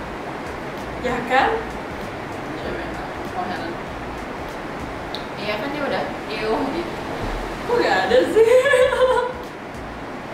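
Two young women laugh together close by.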